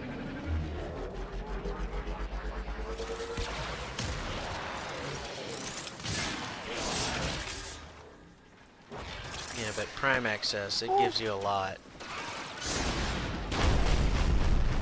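Metal blades clash and slash.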